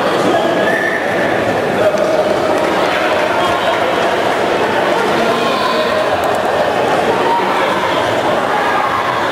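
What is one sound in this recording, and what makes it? A crowd chatters and murmurs throughout a large echoing hall.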